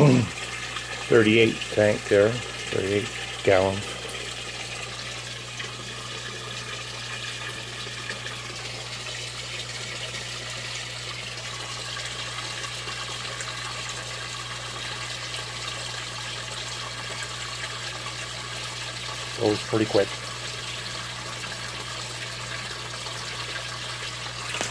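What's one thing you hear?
An aquarium pump hums steadily.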